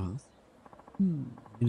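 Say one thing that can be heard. An older man gives a short thoughtful hum.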